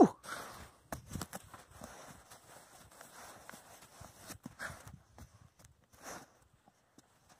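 A dog's paws scrape and scratch rapidly in dry sand.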